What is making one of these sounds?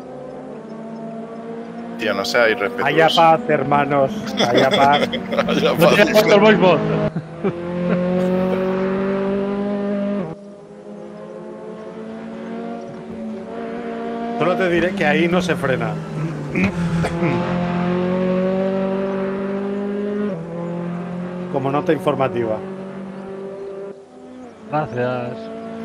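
A racing car engine roars at high revs, shifting pitch as it changes gear.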